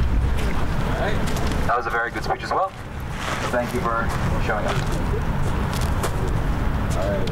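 A young woman speaks into a microphone outdoors.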